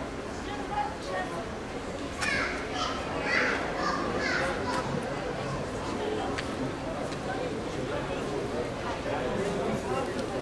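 People chatter at a distance outdoors.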